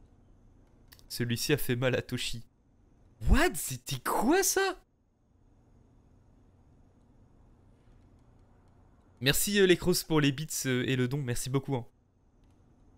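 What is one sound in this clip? A man talks close to a microphone, with animation.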